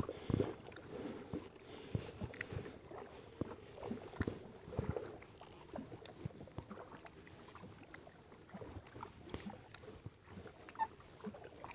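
Water laps gently against a kayak hull.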